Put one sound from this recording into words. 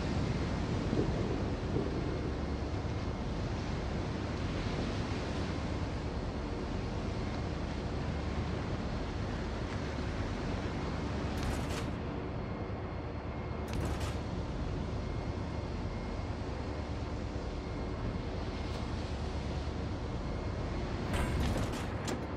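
Waves rush and splash along a ship's hull.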